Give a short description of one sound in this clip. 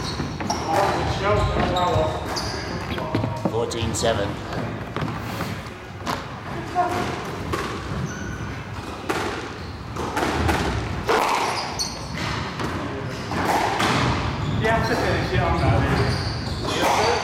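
A ball smacks hard against walls in a large echoing court.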